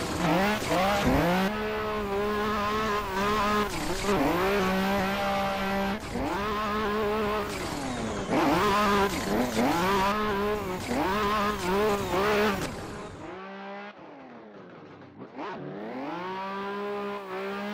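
Tyres screech on asphalt as the car slides sideways.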